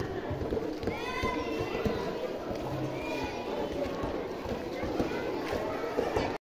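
Children chatter and shout excitedly outdoors.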